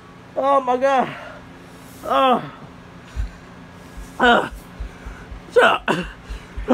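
A young man shouts loudly nearby in short, drawn-out calls.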